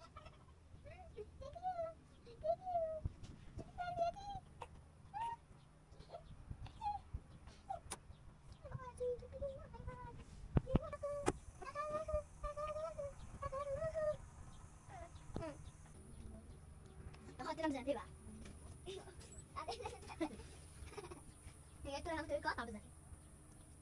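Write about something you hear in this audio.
A young girl talks playfully in a high voice close by.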